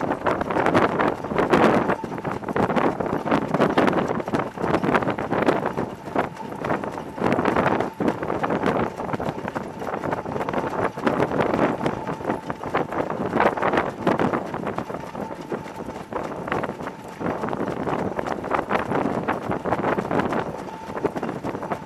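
Sulky wheels rattle over a dirt track.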